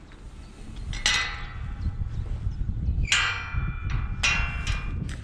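A metal gate latch clanks and rings sharply.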